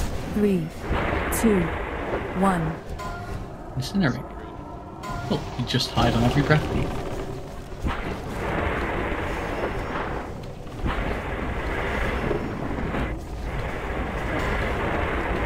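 Magic spells whoosh and crackle amid clashing combat.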